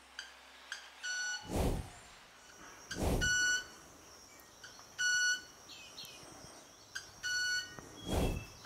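A small bird snaps its wings with sharp clicks and short, ringing, high buzzes, again and again.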